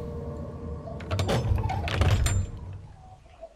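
A heavy wooden door creaks and bangs open.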